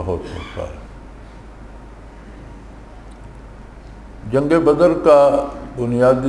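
An elderly man speaks slowly and solemnly into a microphone, with pauses.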